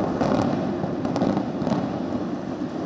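Explosive charges bang in quick succession in the distance.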